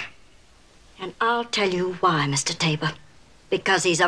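A middle-aged woman speaks earnestly close by.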